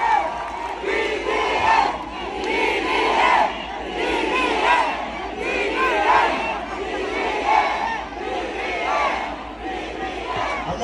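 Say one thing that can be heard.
A large outdoor crowd cheers and chants loudly.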